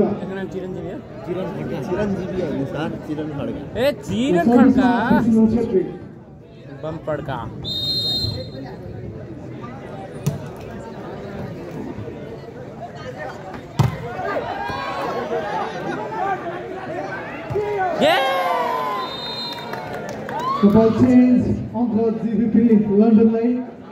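A large outdoor crowd cheers and chatters.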